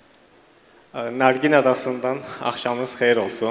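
A young man speaks into a handheld microphone.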